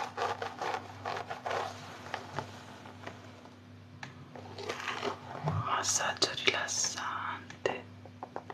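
Hands brush and rustle through long hair close by.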